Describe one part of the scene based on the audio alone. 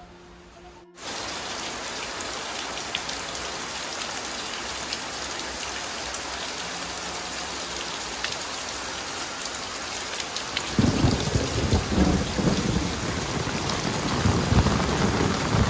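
Heavy rain pours steadily on a roof and the ground outdoors.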